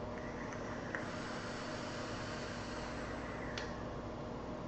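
A man inhales and exhales vapour from an e-cigarette.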